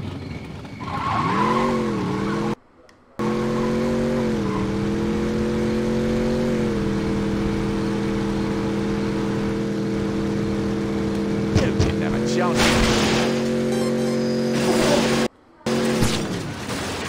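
A car engine revs and holds a steady roar as the car speeds along.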